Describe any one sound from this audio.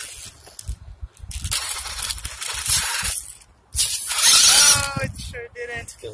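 Rubber tyres scrape and crunch over dry dirt.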